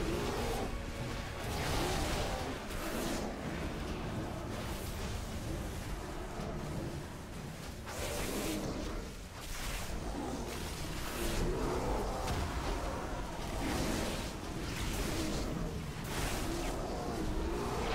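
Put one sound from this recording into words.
Magic blasts crackle and boom during a fierce battle.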